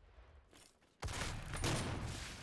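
A shotgun fires with a loud, booming blast.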